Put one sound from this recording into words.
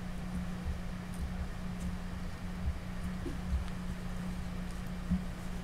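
Fingers press and rub soft clay.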